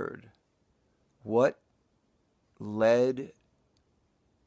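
A middle-aged man speaks in short bursts close to the microphone.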